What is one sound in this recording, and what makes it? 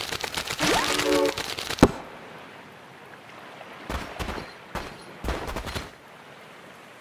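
Cartoonish game sound effects pop, chime and whoosh.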